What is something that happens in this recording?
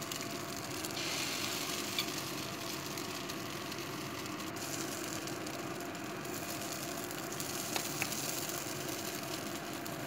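Batter sizzles steadily in a hot frying pan.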